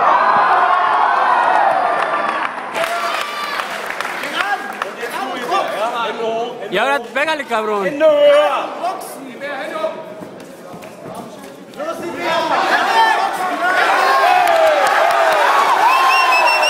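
A crowd of men shouts and cheers loudly in an echoing hall.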